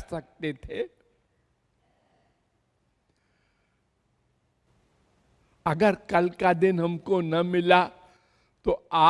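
An elderly man speaks expressively into a microphone, close up, at times in a sung, drawn-out voice.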